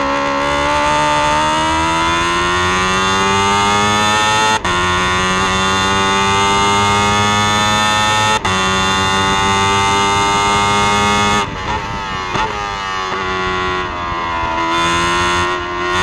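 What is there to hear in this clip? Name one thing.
A racing car engine screams close up, climbing in pitch and dropping sharply with each gear change.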